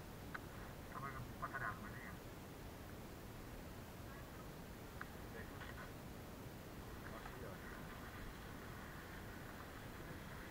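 Wind blows softly outdoors.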